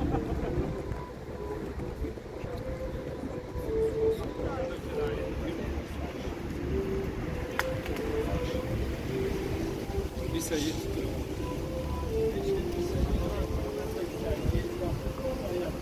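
People chat quietly outdoors in the distance.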